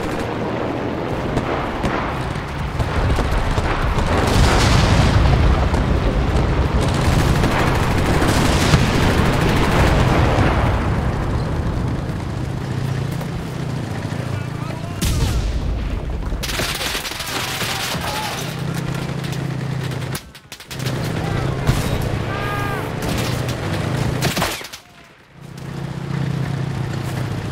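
A heavy engine rumbles steadily.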